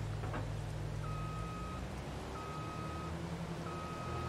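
A reversing beeper sounds in repeated beeps.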